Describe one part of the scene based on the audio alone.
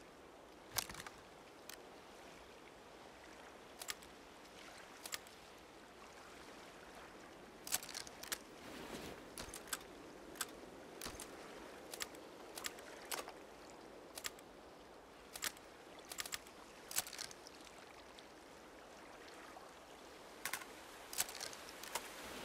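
Short sharp menu clicks sound again and again.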